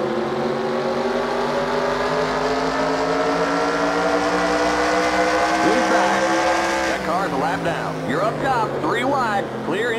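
A racing car engine roars at high speed, its pitch climbing slowly before dropping.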